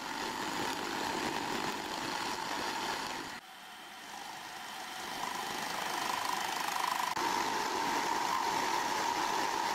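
A milling machine cutter grinds steadily into metal with a high whine.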